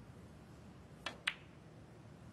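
A snooker cue taps a ball with a sharp click.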